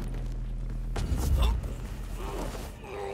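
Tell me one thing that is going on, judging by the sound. A scuffle breaks out with thuds and rustling.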